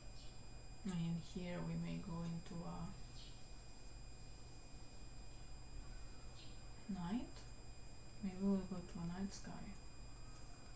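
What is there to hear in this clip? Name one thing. A young woman speaks calmly into a microphone, close by.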